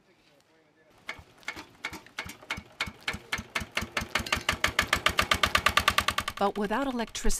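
A small engine is cranked by hand and starts chugging, speeding up.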